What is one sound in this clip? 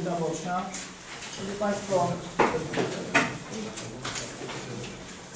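A man speaks calmly at a distance in a room.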